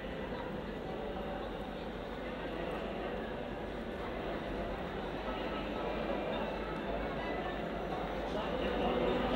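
A crowd murmurs in an open square.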